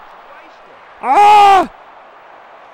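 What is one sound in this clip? A young man shouts out loudly and excitedly into a microphone.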